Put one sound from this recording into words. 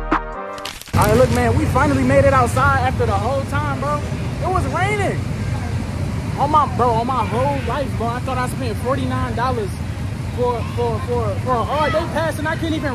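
A young man talks with animation close up.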